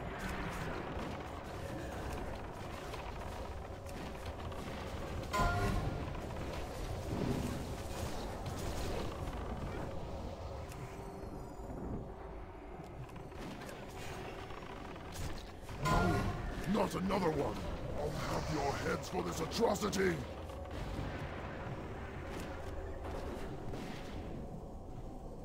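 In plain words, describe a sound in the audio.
Magic spells crackle and whoosh amid a fight.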